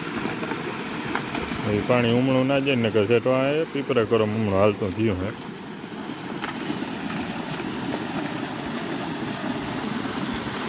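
Water gushes and splashes steadily from a pipe.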